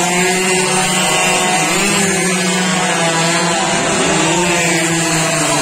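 Racing motorbike engines whine and roar as they approach.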